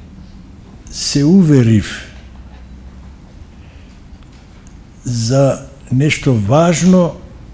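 An elderly man speaks slowly into a microphone, heard through loudspeakers in a large echoing hall.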